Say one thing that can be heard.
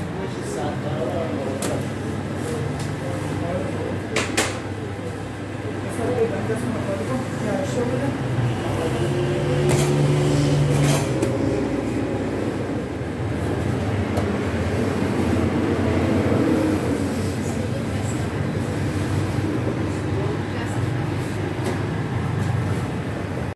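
Flat loaves knock and clatter as they are set down on a metal oven ledge.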